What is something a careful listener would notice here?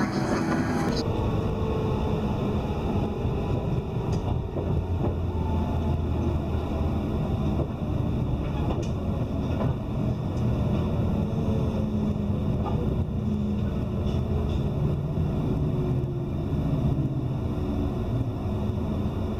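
Train brakes squeal with falling tones as the train slows.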